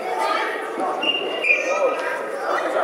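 Shoes squeak sharply on a hall floor.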